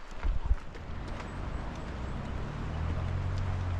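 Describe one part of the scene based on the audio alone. A river rushes nearby.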